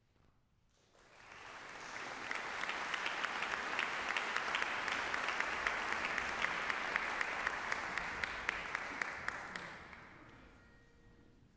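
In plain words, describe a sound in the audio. A large audience applauds in an echoing hall, swelling and then fading.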